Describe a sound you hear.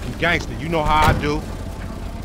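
A van door slams shut.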